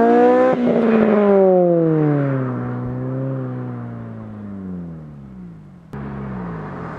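A car engine hums and fades as the car drives away.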